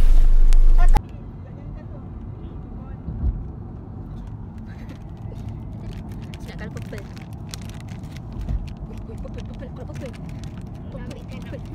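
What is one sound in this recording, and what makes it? A car engine hums low and steady inside the car.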